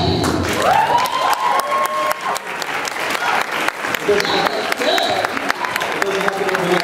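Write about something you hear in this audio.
A crowd cheers and whoops loudly.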